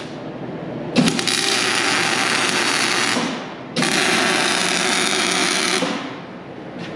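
A welding arc crackles and hisses in short bursts.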